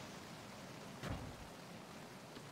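A heavy metal door slides open with a thud.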